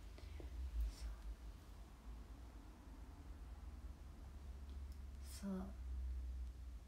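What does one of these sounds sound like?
A young woman speaks quietly and calmly close to a microphone.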